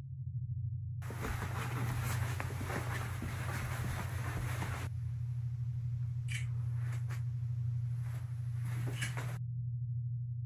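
Footsteps creak on a wooden floor.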